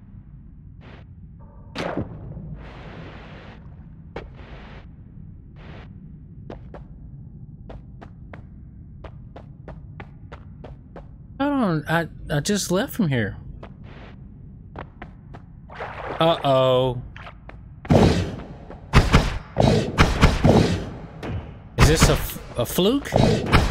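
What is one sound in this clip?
Short, soft game footsteps tap quickly.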